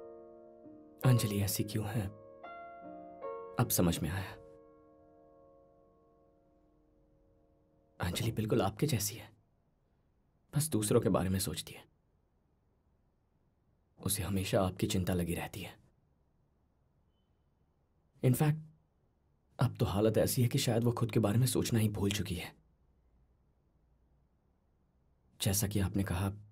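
A young man speaks quietly and earnestly, close by.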